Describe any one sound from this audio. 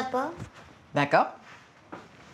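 A woman answers briefly, close by.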